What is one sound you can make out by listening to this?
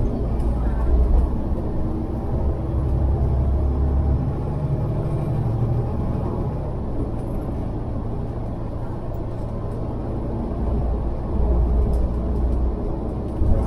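A vehicle's engine rumbles steadily while driving along a road.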